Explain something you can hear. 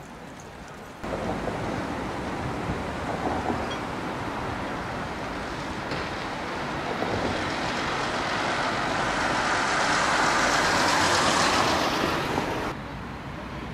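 A tram rumbles along its tracks.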